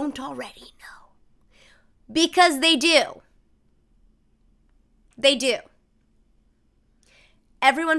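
A young woman speaks animatedly in short bursts, close to a microphone.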